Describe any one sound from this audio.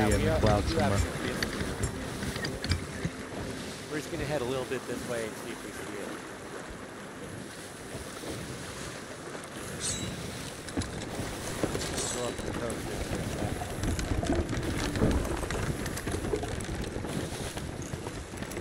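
Stormy sea waves wash and roar around a ship.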